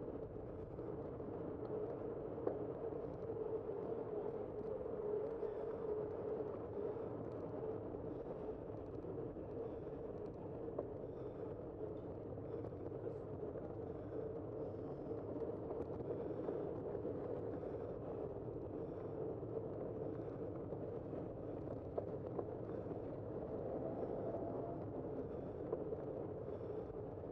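Wind rushes steadily past a moving rider.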